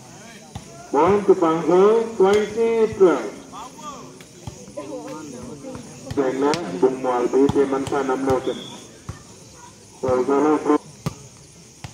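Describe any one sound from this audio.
Young men shout loudly during play outdoors.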